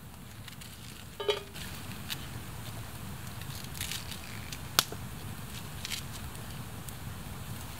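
Slices of onion drop into a metal pot.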